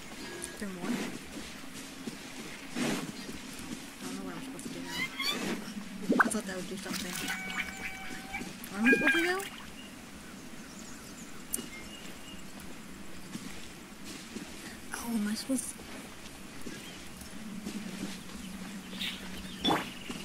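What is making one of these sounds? Footsteps patter across grass.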